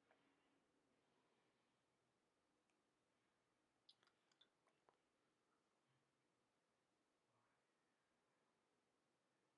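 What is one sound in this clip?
A man speaks softly and briefly close to a microphone.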